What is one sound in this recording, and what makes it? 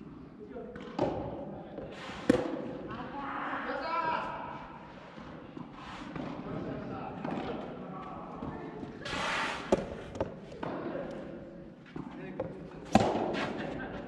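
Tennis balls are struck with rackets, echoing in a large hall.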